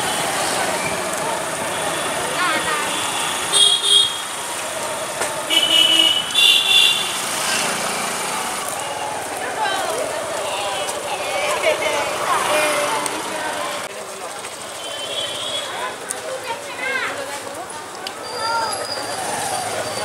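A crowd chatters and murmurs all around.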